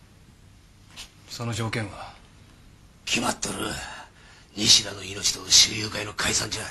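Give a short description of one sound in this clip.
A young man answers sharply.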